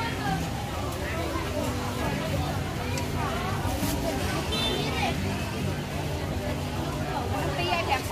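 Plastic bags crinkle as they are handled.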